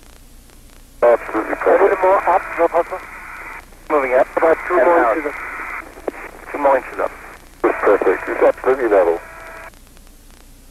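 A man speaks calmly over a crackly, thin radio link.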